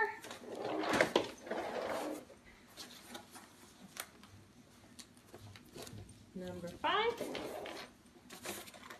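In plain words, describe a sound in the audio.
A folding frame clicks and knocks as it is pressed into place.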